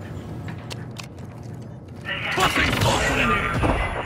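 An elevator door slides shut with a low rumble.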